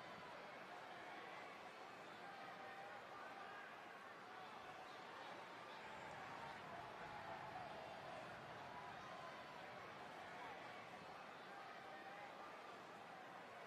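A large crowd roars and cheers steadily in an echoing arena.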